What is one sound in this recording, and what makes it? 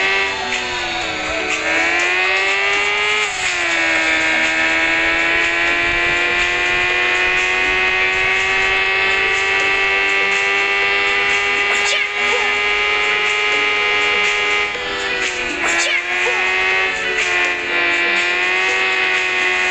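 A motorcycle engine drones steadily, its pitch dipping and rising as it revs.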